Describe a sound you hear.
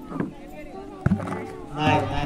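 A ball knocks over a plastic bucket with a hollow thud.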